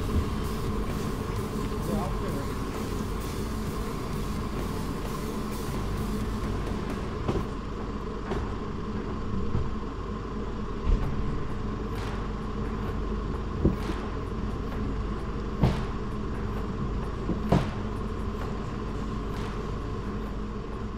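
An engine idles steadily nearby.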